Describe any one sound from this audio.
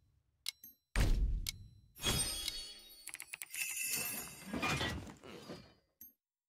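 Magic spells and weapon hits crackle and clash in a game battle.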